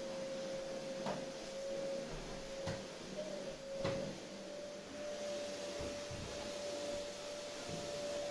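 A vacuum cleaner hums steadily.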